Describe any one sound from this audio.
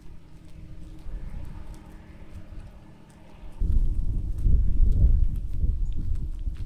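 Sheep tear and chew grass close by.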